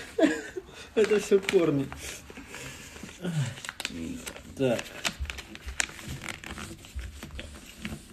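Paper rustles and crinkles as it is folded.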